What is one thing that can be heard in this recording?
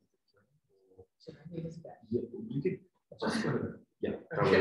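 A woman speaks calmly through a microphone in a quiet room.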